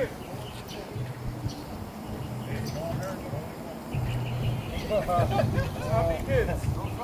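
A crowd of young people chatters and calls out outdoors.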